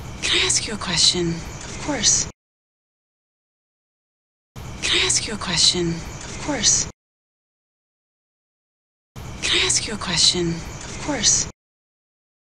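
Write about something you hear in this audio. A woman speaks quietly and emotionally, close by.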